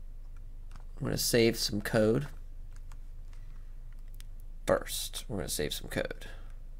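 A man speaks calmly and close to a microphone in short bursts.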